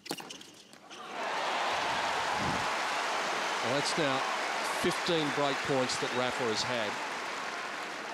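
A large crowd cheers and applauds loudly.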